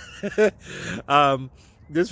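A man laughs close to the microphone.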